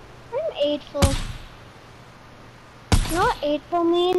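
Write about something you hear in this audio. A rifle fires sharp shots.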